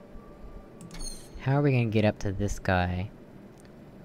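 A video game puzzle panel plays a sweeping electronic failure tone.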